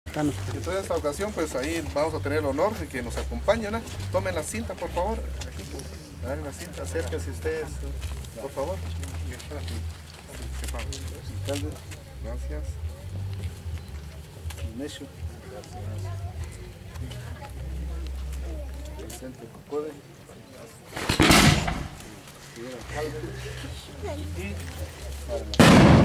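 A crowd of men, women and children chatters outdoors.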